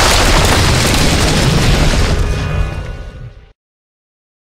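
Bricks crash and tumble as a wall is smashed.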